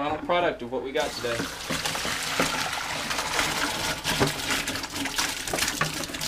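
Water pours from a bucket into a plastic colander.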